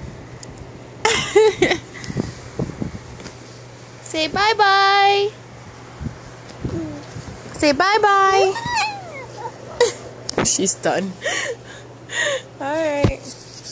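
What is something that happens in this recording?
A toddler babbles close by.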